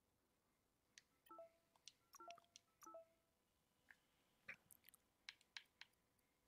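Soft clicks tick as a cursor moves.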